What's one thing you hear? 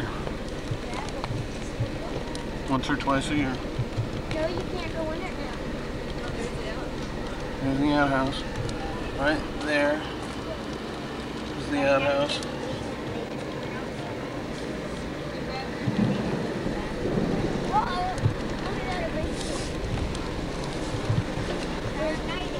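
Wind rustles through leafy trees outdoors.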